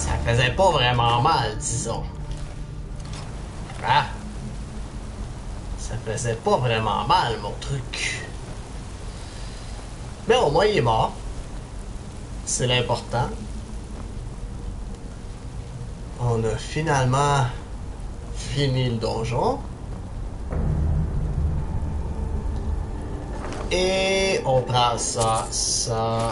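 A young man talks through a microphone.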